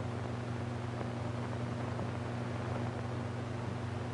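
A man laughs, heard through an old, hissing recording.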